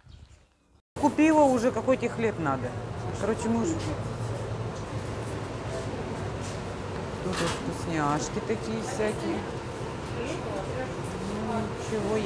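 A busy shop murmurs with indistinct voices and clatter.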